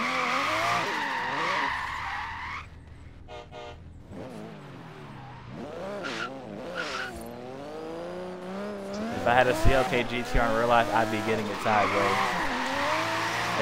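Tyres squeal as a car drifts.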